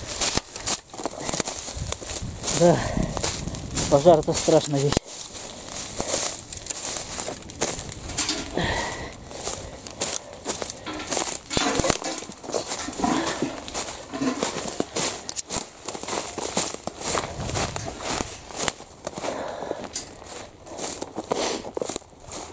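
Dry twigs and branches snap underfoot.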